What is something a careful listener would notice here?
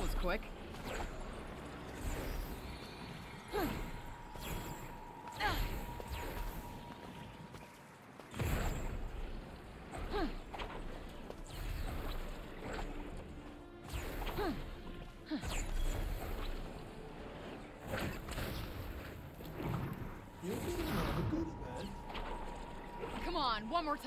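Sharp whooshes sweep past as a figure leaps and glides through the air.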